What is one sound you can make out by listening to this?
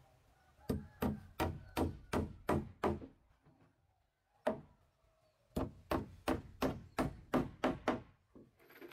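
A hammer drives nails into wooden floorboards.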